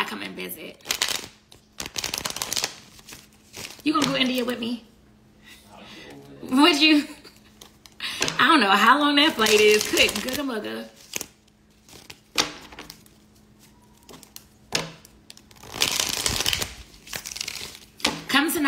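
Paper bills rustle and flick as a young woman counts them.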